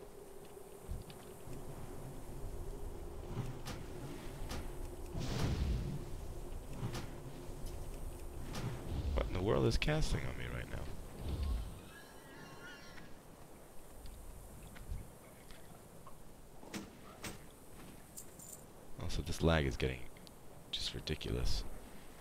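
Game sound effects of spells and hits ring out.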